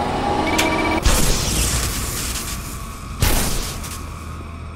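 A gun fires two shots.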